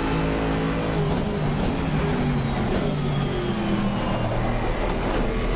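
A racing car engine drops in pitch as the car brakes and shifts down.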